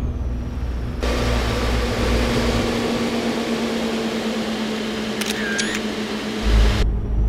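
Tyres roll with a rushing noise on a highway.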